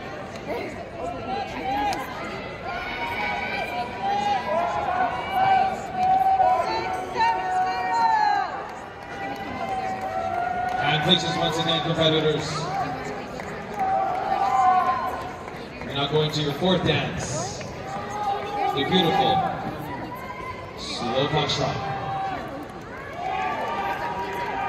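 A crowd of spectators murmurs and chatters nearby.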